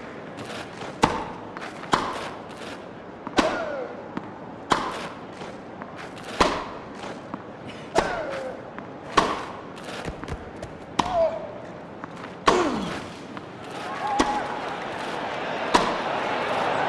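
Tennis balls are struck with sharp pops, back and forth in a rally.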